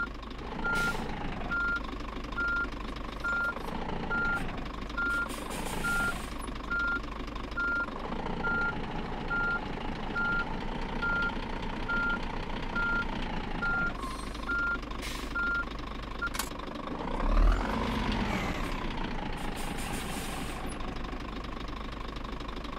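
A diesel truck engine runs while the truck creeps along at low speed.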